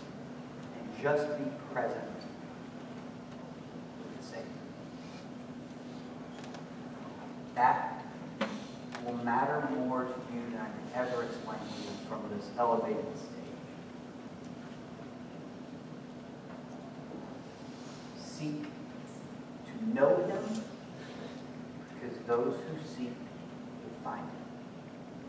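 A young man speaks into a microphone in short bursts with long pauses, in an echoing room.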